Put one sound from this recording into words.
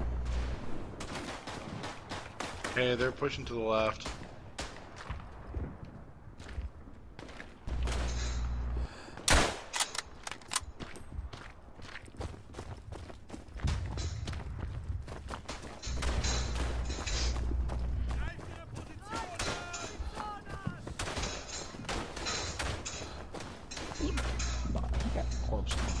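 A mounted machine gun fires in bursts.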